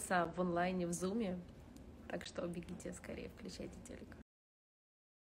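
A young woman speaks playfully close to a phone microphone.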